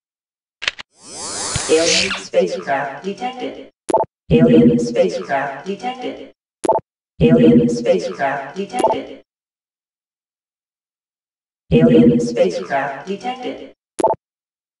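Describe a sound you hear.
A computer game's alert signal sounds several times.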